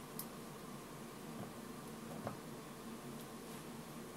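Liquid pours into a small plastic cup.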